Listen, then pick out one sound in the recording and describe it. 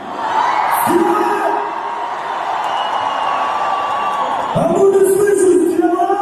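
A crowd sings along loudly with music.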